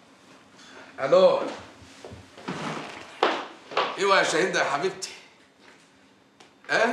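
A middle-aged man speaks animatedly into a phone, close by.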